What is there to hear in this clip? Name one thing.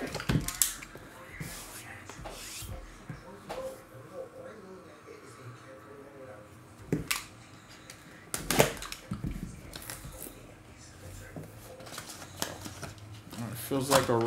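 Cardboard box lids scrape and tap as a box is opened.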